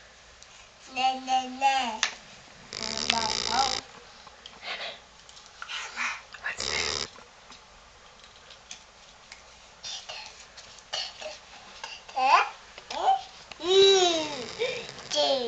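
A toddler girl babbles and squeals close by.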